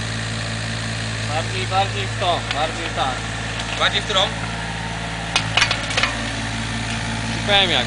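A small excavator engine runs with a steady low rumble nearby.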